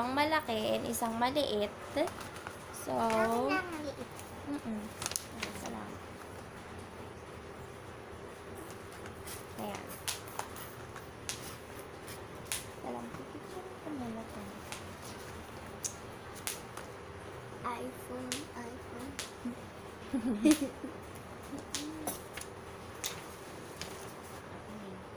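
Boxes rustle and tap as they are handled close by.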